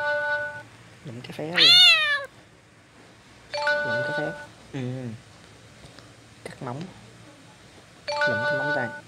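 A cartoon cat meows in short, rising and falling cries.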